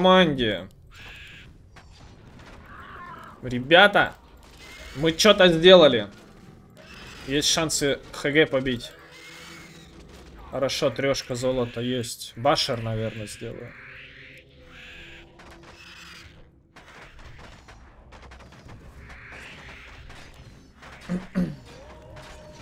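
A young man talks with animation into a close microphone, in bursts with pauses.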